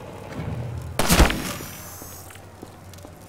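A window pane shatters with a loud crash of breaking glass.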